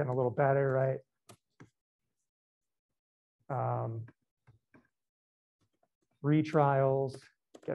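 A man speaks calmly through a microphone, in short bursts.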